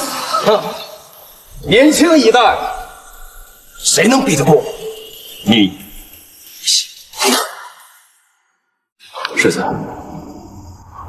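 A young man speaks boastfully and mockingly, close by.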